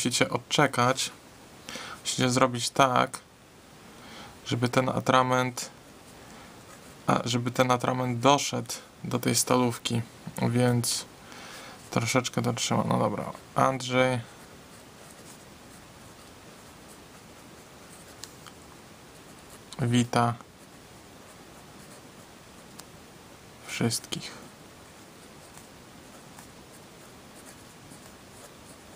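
A pen nib scratches softly on paper.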